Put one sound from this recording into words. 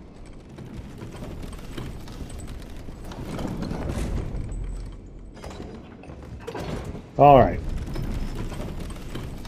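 A wooden lift rumbles and creaks as it moves along its chains.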